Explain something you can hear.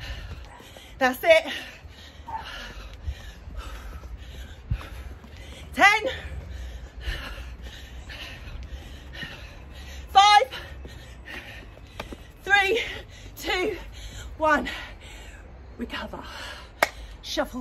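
A young woman speaks with animation, close by.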